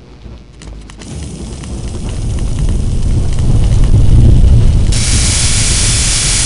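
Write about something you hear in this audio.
A flamethrower roars with a steady rushing blast.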